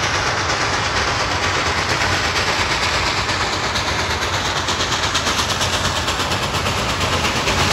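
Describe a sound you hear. A steam locomotive's wheels rumble on the rails.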